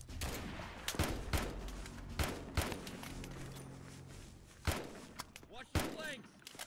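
Gunshots crack at intervals.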